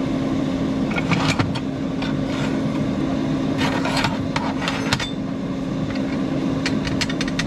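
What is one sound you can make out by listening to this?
Metal pieces clink and clatter against a hard workbench.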